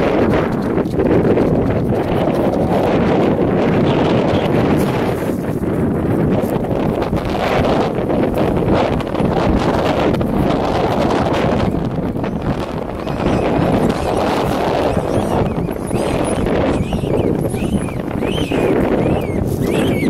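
Wind blows hard across the microphone outdoors, rumbling and buffeting.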